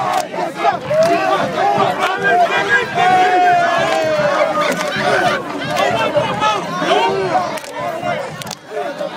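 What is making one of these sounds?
A large crowd of men chants and shouts loudly nearby, outdoors.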